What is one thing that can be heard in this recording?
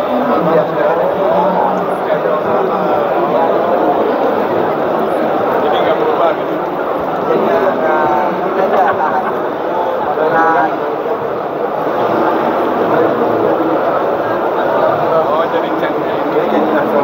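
A crowd of men and women chatter all around in a large, busy indoor hall.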